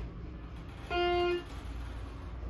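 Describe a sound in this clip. An elevator chime rings once.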